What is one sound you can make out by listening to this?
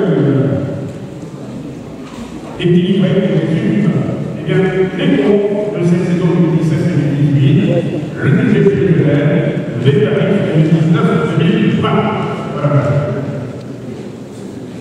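A man speaks into a microphone through loudspeakers in a large echoing hall.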